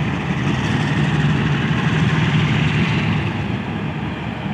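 Train carriages clatter slowly along the rails.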